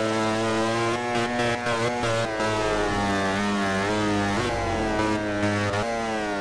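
A motorcycle engine drops in pitch as it slows for a corner.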